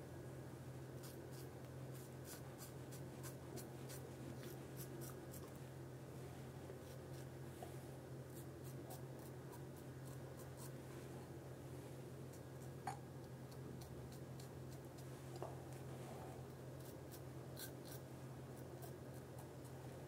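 A razor scrapes through stubble close by in short, quick strokes.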